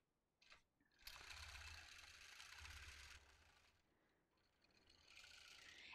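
A sewing machine hums steadily as it stitches.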